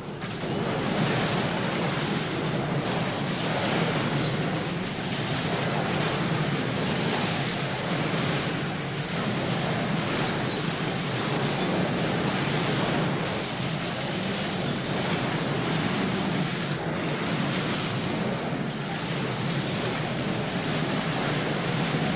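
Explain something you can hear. Crackling electric magic and clashing battle sounds play steadily.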